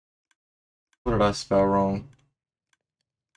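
A young man speaks briefly and loudly into a close microphone.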